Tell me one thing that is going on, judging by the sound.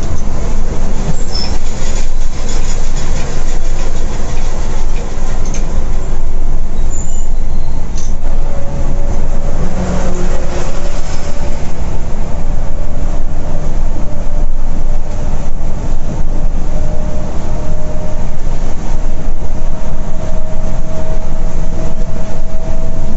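A diesel coach engine drones at cruising speed, heard from inside the cab.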